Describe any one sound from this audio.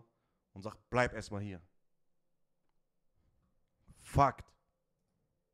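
A man speaks into a close microphone with expression.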